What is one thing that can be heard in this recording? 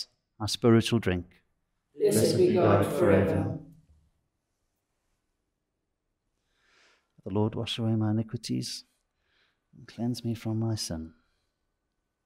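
An older man speaks slowly and calmly in short phrases with pauses.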